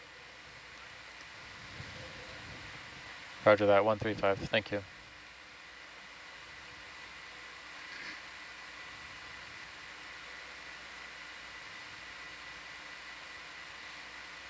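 A robotic arm's motors hum steadily underwater.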